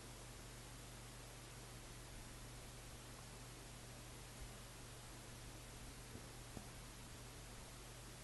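A kitten's paws patter on a wooden floor.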